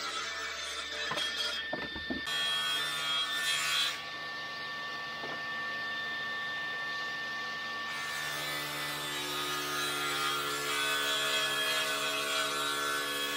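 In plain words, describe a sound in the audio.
A table saw blade cuts through wood.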